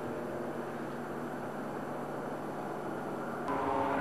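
A small aircraft engine drones steadily overhead.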